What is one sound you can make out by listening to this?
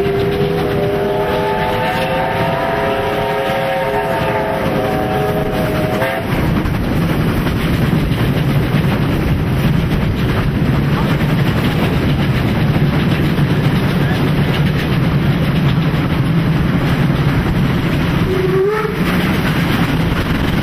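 A steam locomotive chuffs and roars as it hauls a train.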